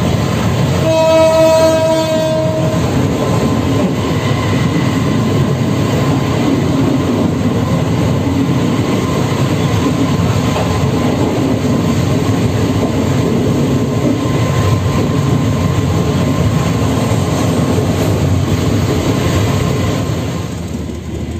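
A passing train roars past very close, then the noise suddenly drops away.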